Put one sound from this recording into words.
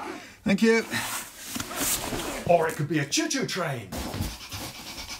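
Cardboard rustles and scrapes.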